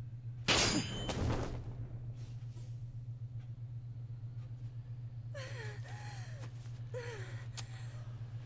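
A young man exclaims excitedly into a close microphone.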